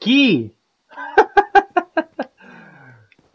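A young man laughs in short bursts.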